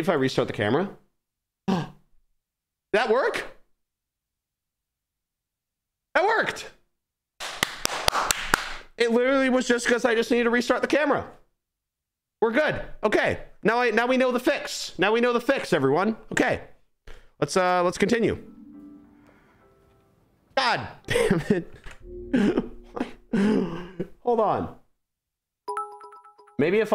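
A young man talks and exclaims with animation into a close microphone, with pauses between bursts.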